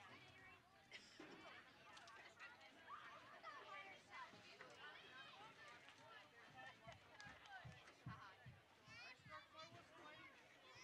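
Young women call out and talk on a playing field outdoors.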